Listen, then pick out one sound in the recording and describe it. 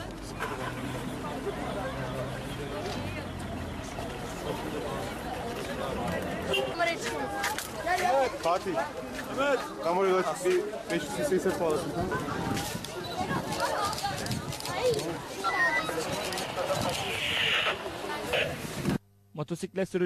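A crowd of young people talks and calls out excitedly outdoors.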